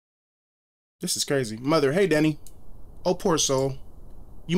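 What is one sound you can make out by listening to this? A man talks with animation into a microphone.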